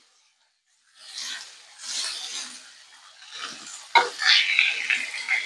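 Onions sizzle softly in a hot pan.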